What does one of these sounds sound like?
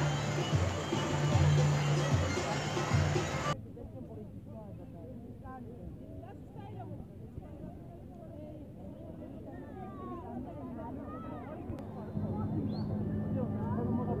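A crowd of men and women chatters all around outdoors.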